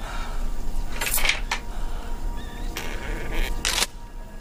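A metal cabinet door creaks open.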